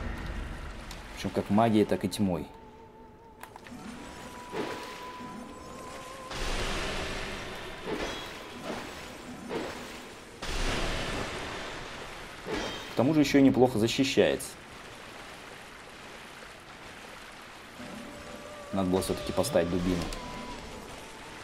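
Water splashes as footsteps wade through it.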